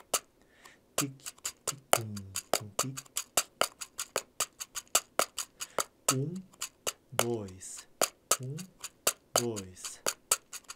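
A man speaks softly and close to a microphone.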